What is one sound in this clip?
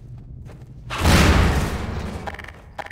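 A gas canister explodes with a loud, rumbling boom.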